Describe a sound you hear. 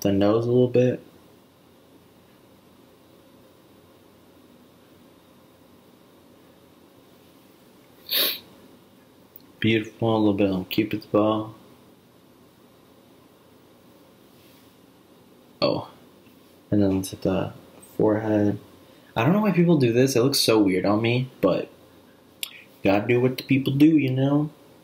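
A young man talks casually, close to a microphone.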